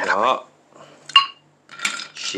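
A metal fork clinks against a ceramic plate.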